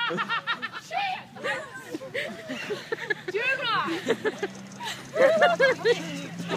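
A young woman laughs loudly and shrieks close by.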